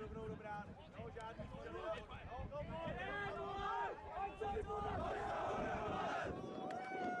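A group of young men shout and chant together.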